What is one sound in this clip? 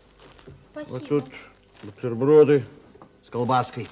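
Cellophane crinkles as a man handles a packet.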